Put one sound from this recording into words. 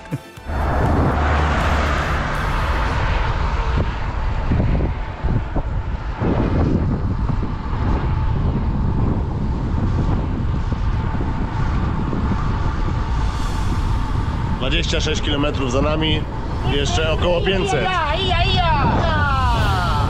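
Wind rushes loudly past a microphone on a moving bicycle.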